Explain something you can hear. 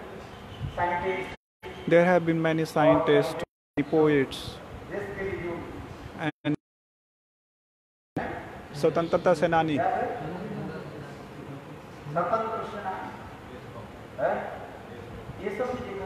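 An elderly man speaks calmly into a microphone, heard through a loudspeaker.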